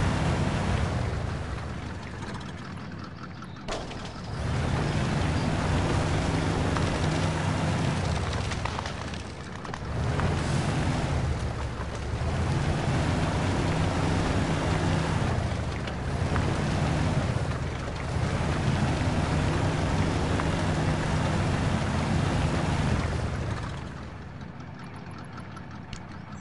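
A truck engine revs and strains as the vehicle crawls through mud.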